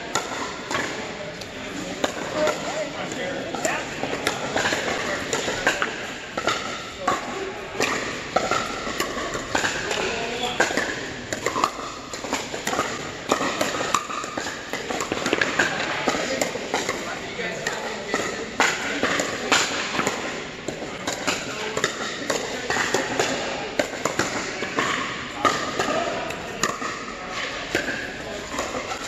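Paddles pop sharply against plastic balls in a large echoing hall.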